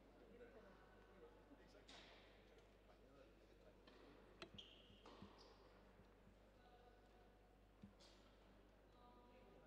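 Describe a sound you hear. A crowd murmurs quietly in a large indoor hall.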